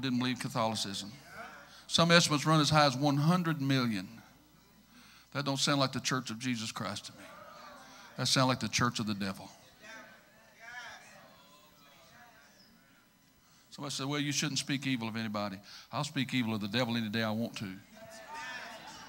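A middle-aged man preaches with passion through a microphone, in a large echoing hall.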